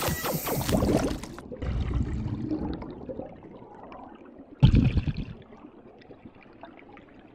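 Bubbles gurgle and burble underwater as a diver swims.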